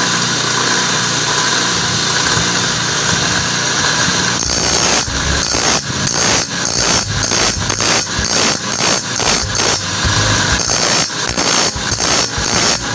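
An electric grinding wheel spins with a steady whir.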